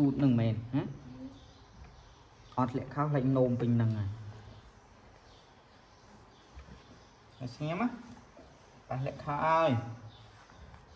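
A young man speaks softly and gently close by.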